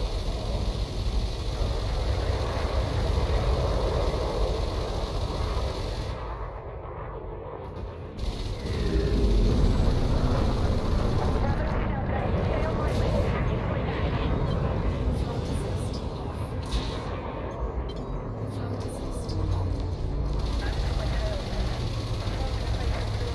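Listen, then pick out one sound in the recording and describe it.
Laser weapons fire in sustained, buzzing bursts.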